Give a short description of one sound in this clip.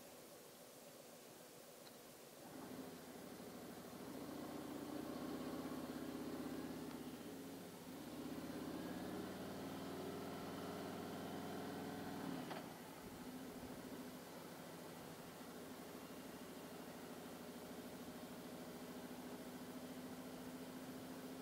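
A motorcycle engine rumbles and revs up and down as the motorcycle rides along.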